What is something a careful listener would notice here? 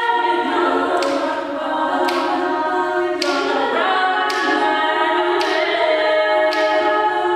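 A mixed choir of young singers sings in close harmony in a large echoing hall.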